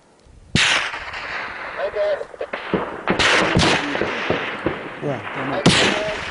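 Shells explode one after another with loud blasts that echo off the hills.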